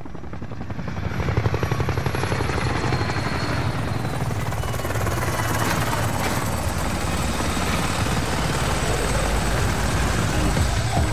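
A helicopter's rotor blades thump rapidly close overhead.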